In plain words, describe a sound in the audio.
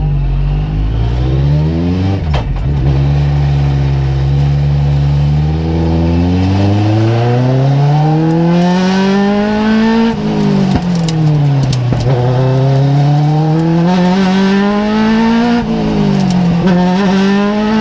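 A small racing car engine accelerates hard through the gears, heard from inside the cockpit, its pitch dropping at each upshift.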